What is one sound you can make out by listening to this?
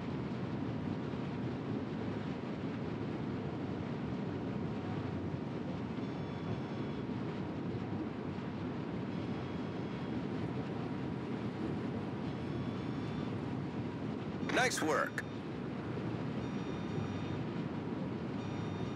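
A ship's engine rumbles low and steady over rushing sea water.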